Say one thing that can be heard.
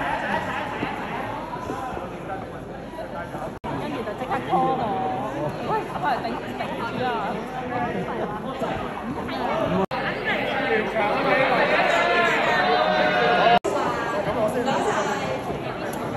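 Several people chatter in a large hall.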